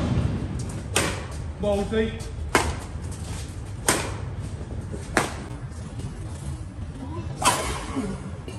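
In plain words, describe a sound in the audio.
Badminton rackets strike a shuttlecock with sharp pops outdoors.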